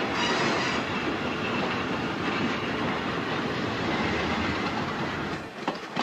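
An electric train rumbles past on the tracks.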